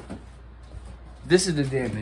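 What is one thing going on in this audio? Cardboard rustles and flaps.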